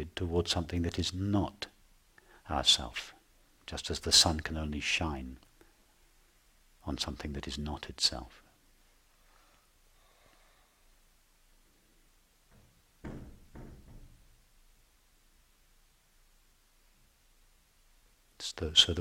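A middle-aged man speaks calmly and slowly, close to a microphone, with long pauses.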